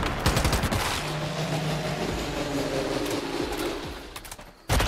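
A large creature roars and growls.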